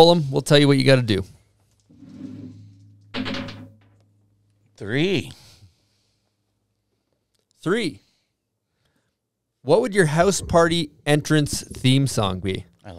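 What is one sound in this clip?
A man speaks into a close microphone in short bursts.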